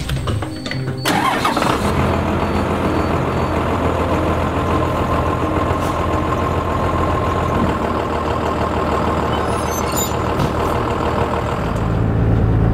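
A bus engine starts and idles with a low rumble.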